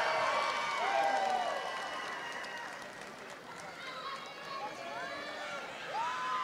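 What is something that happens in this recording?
A crowd cheers and whistles in a large echoing hall.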